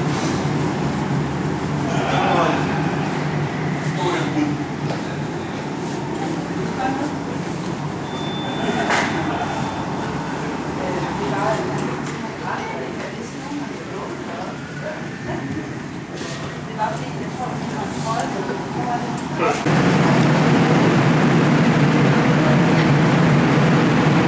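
A crowd murmurs steadily in the background.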